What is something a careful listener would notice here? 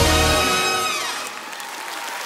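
A man sings into a microphone with a band, ending on a held note.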